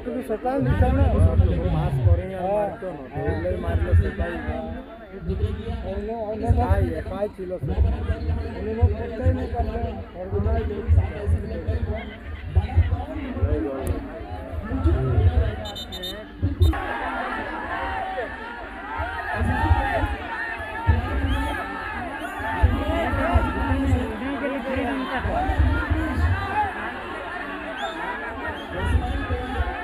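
A large crowd of spectators chatters and shouts from a distance outdoors.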